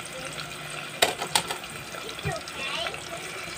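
A wooden spoon knocks and scrapes against a metal pot.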